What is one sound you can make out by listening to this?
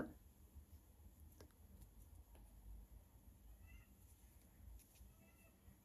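Thread rustles softly as it is pulled through fabric.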